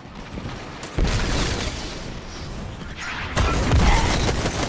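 Gunfire blasts in rapid bursts.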